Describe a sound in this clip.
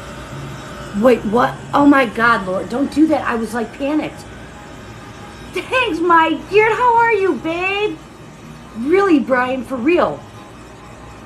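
A middle-aged woman talks with animation close by.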